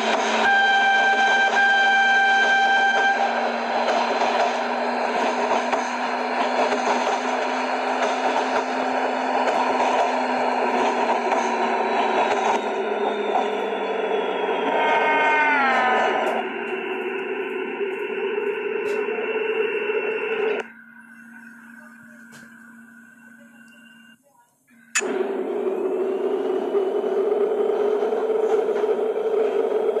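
A train engine hums steadily as the train runs along the rails.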